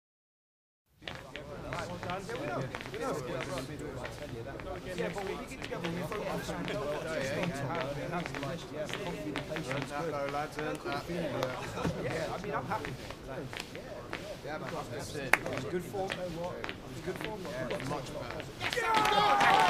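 A stadium crowd murmurs and chants steadily.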